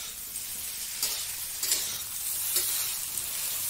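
A metal spatula scrapes and knocks against a pan.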